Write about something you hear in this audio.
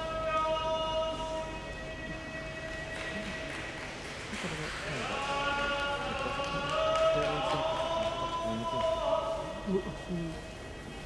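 A man chants out in long, drawn-out tones in a large echoing hall.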